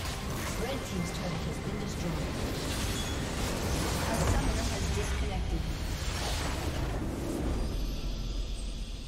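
A game's base crystal shatters with a loud explosion.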